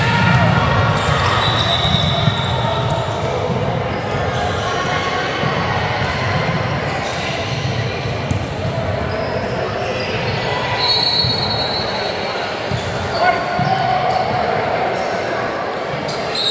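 Young girls and adults chatter and call out in a large echoing gym.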